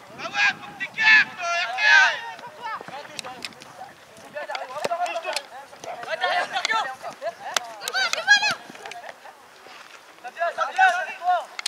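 Young boys shout to each other outdoors, their calls carrying across an open field.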